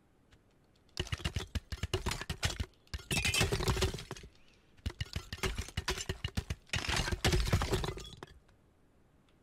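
Toy building blocks clatter and tumble.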